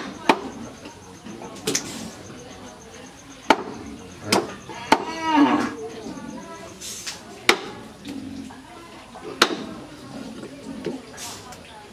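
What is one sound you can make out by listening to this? Knives chop through meat onto wooden boards with sharp knocks.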